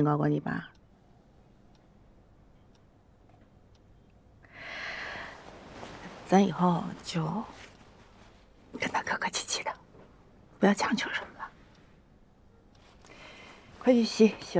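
A young woman speaks quietly, close by.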